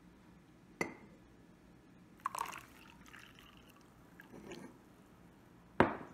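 Liquid pours into a mug.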